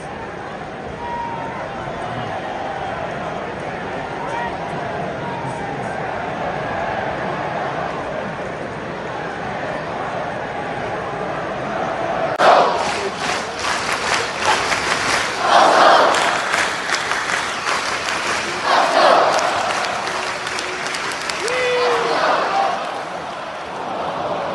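A large stadium crowd murmurs and chants, echoing around the stands.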